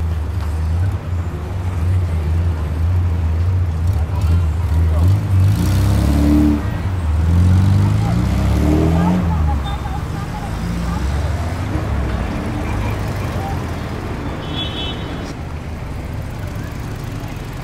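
A crowd murmurs along a busy street.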